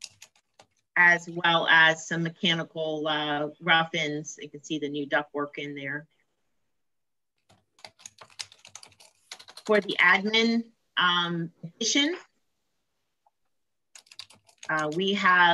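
A woman speaks calmly over an online call, in bursts with pauses.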